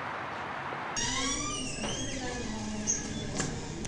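A heavy door creaks as it swings open.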